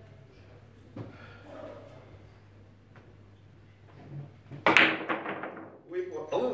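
Billiard balls click against each other and roll on the table.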